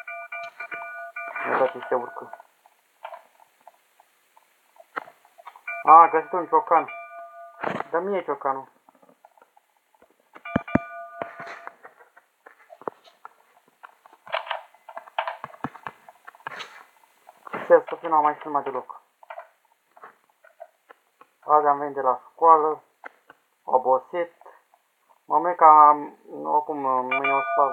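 A young man talks casually and close to a microphone, with pauses.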